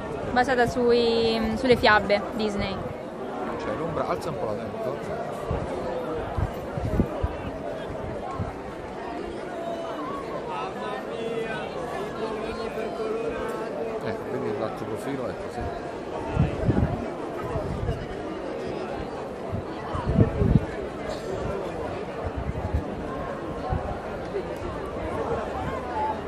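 A crowd murmurs and chatters in the open air.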